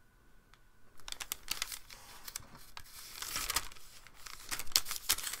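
A sheet of paper slides and rustles across a table.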